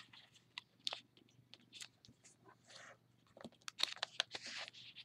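Paper crinkles and rustles as it is folded close by.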